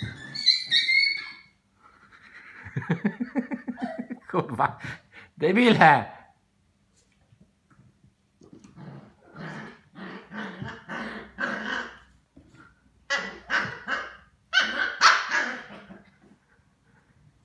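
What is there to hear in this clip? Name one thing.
Small puppies yap and growl playfully.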